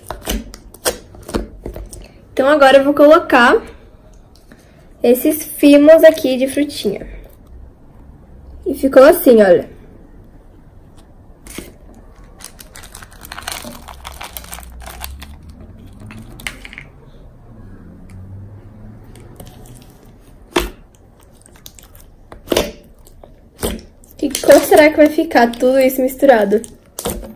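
Fingers squish and poke wet slime in a jar.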